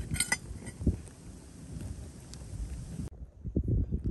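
Small stones click together in a hand over gravel.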